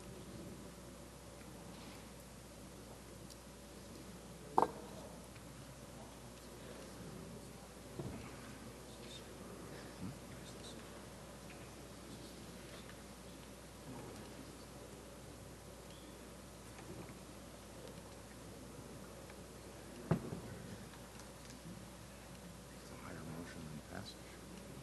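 People murmur quietly in a large echoing hall.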